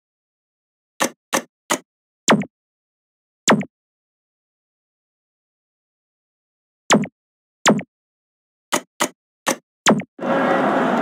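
Short menu clicks and beeps sound one after another.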